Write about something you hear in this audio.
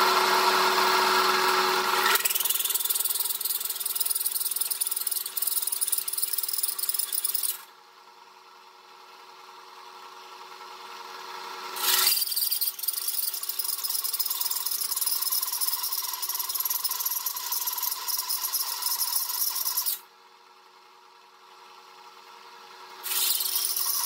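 A drill press hole saw screeches as it grinds through sheet metal.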